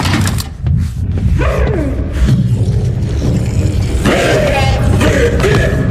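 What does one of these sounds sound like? A large creature growls and grunts close by.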